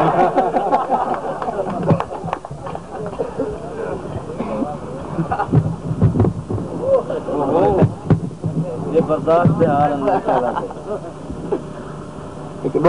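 Young men laugh close by.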